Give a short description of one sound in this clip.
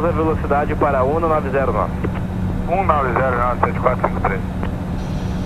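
A man speaks briefly over a crackly radio.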